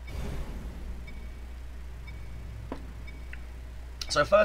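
Short electronic beeps tick during a countdown.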